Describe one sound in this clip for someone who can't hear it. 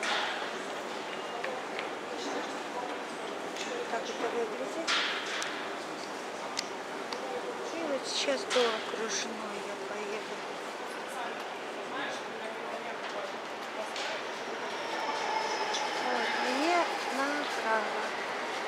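A crowd of men and women talk in a hard, echoing hall.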